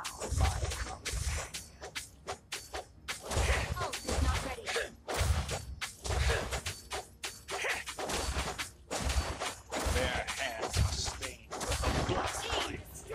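Game attacks hit with sharp impacts.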